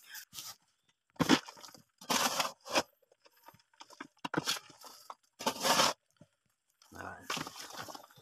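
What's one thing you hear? Soil thuds and rattles into a bucket.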